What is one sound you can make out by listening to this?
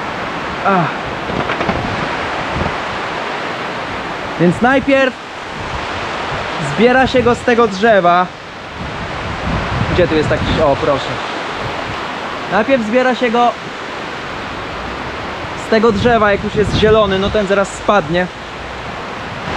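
Wind blows steadily outdoors across the microphone.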